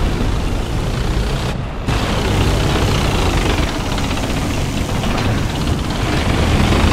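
A tank engine rumbles loudly as it drives.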